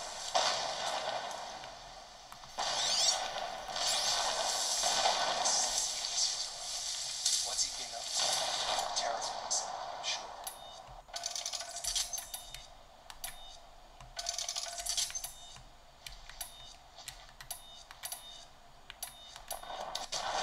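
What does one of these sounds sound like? Game sounds play through a small handheld speaker.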